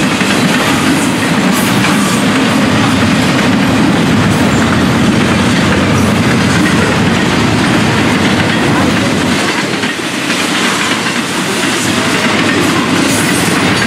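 Train wheels clack and squeal on the rails.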